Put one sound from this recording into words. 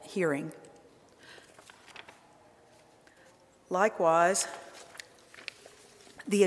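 An older woman speaks slowly into a microphone, with long pauses.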